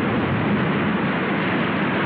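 Water gushes and splashes loudly.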